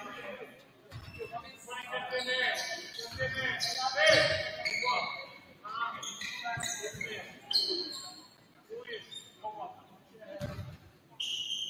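A basketball bounces on a hard court floor.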